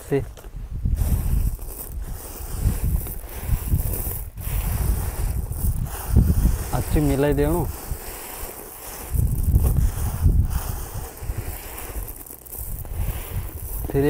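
Dry grains rustle and patter as hands stir them.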